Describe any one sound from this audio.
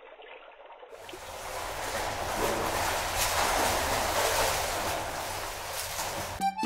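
Water splashes as a man climbs out of a pool.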